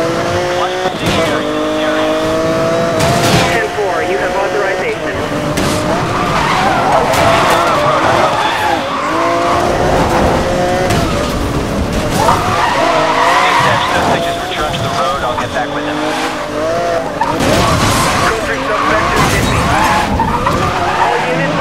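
A car scrapes and crashes into obstacles.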